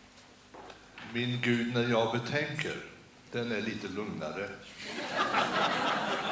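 An elderly man speaks calmly into a microphone, heard through loudspeakers in a large hall.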